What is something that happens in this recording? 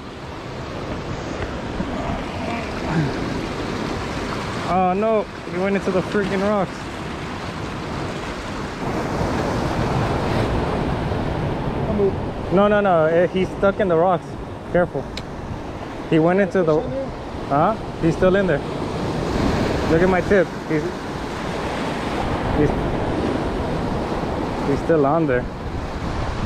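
Waves crash and wash over rocks.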